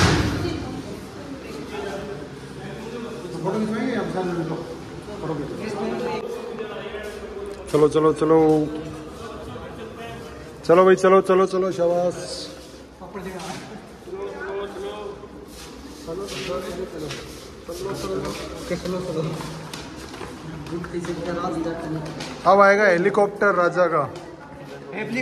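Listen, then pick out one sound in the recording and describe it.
A man talks with animation close by, in an echoing space.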